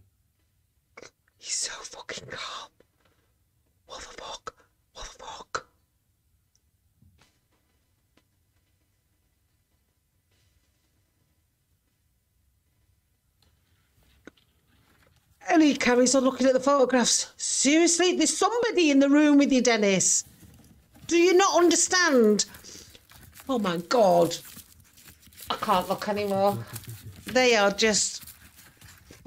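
A middle-aged woman talks with animation into a close microphone.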